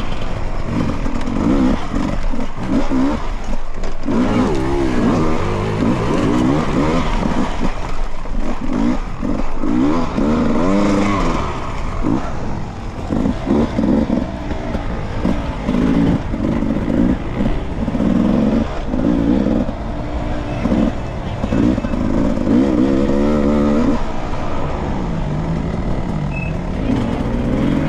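A dirt bike engine revs hard up and down, close by.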